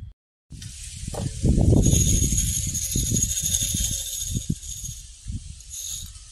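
Coarse granules slide and rattle inside a glass beaker.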